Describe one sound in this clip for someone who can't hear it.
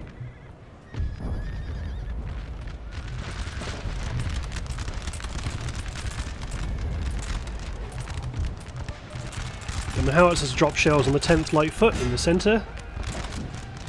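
Musket volleys crackle and pop across a battlefield.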